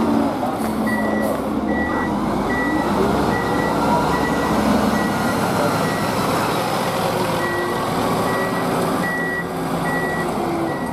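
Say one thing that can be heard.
A fire truck's warning beeper sounds in steady, evenly spaced beeps.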